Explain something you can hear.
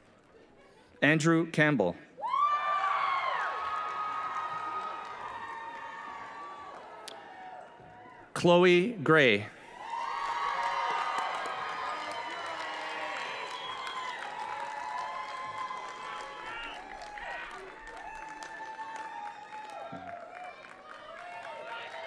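A crowd cheers and whoops loudly outdoors.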